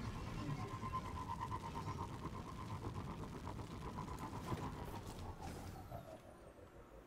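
A vehicle engine hums steadily and then fades.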